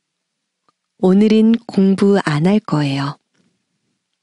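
A young boy speaks a short phrase clearly and slowly.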